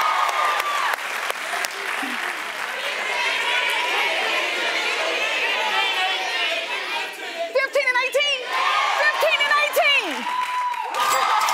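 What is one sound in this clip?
A woman speaks excitedly and laughs into a microphone.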